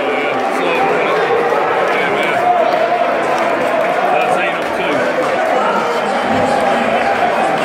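A crowd of men and women chatter and talk loudly close by, in a large echoing hall.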